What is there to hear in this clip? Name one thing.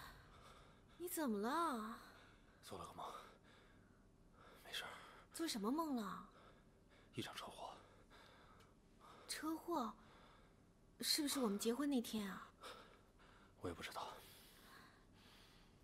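A young man speaks quietly with distress, close by.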